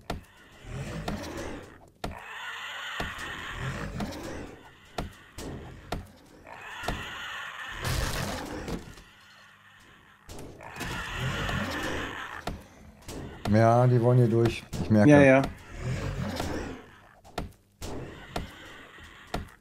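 Wooden crates crack and splinter under blows.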